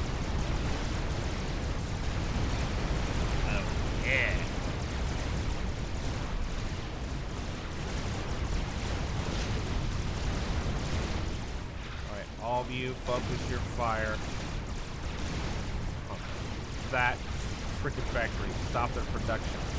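Explosions boom and rumble in a steady battle din.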